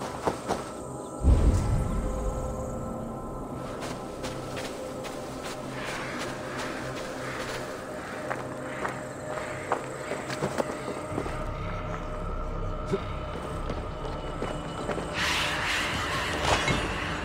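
Wind blows softly and steadily.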